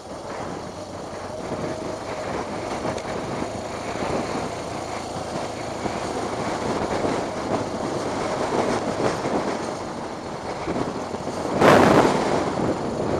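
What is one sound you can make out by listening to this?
Tyres crunch and rumble over loose dirt.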